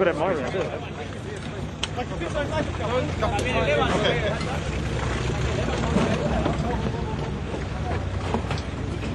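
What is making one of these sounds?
A crowd of men and women talk and shout excitedly close by.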